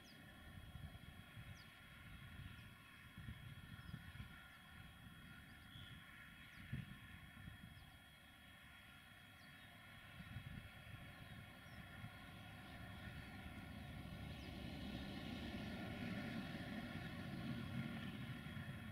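Wind gusts and rumbles across an open outdoor space.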